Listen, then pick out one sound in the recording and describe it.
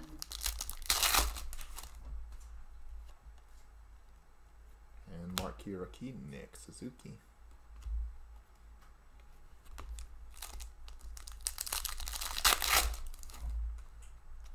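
A foil wrapper crinkles and tears as hands rip open a card pack.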